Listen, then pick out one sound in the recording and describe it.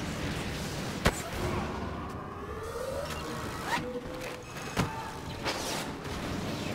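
Blaster shots fire in sharp bursts.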